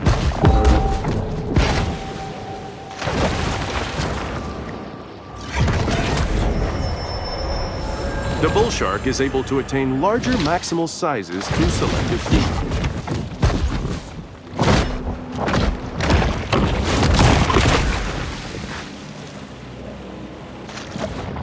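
Water splashes and churns as a large fish thrashes at the surface.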